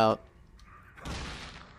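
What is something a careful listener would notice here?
A body falls and hits the floor with a thud.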